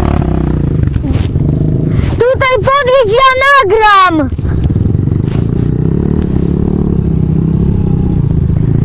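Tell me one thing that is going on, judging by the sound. A dirt bike engine rumbles close by, outdoors.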